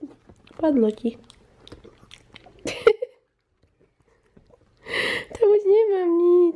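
A small dog whines up close in high, drawn-out tones.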